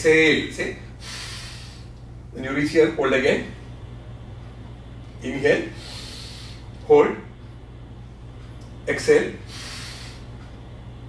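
A man breathes out audibly.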